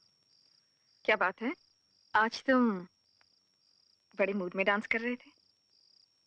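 A woman speaks playfully, close by.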